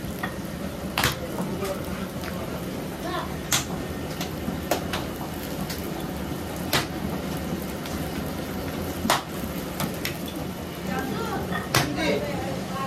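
Dough slaps and thumps onto a hot griddle.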